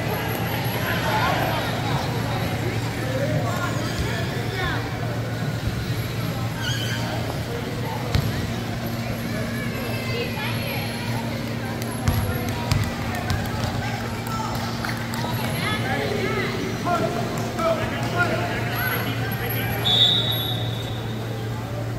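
Power wheelchairs hum and whir across a court.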